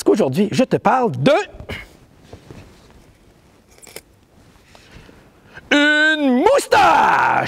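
A man speaks theatrically in a loud, sing-song voice.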